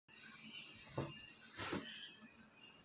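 A laptop bumps and knocks against a table.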